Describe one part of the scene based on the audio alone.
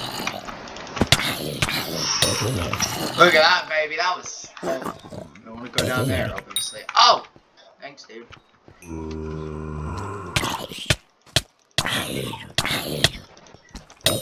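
Sword blows strike a zombie with quick thuds.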